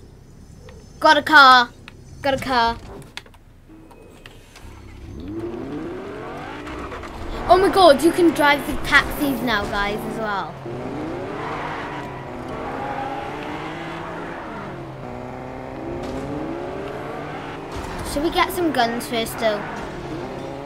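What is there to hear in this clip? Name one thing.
A young girl speaks with animation into a close microphone.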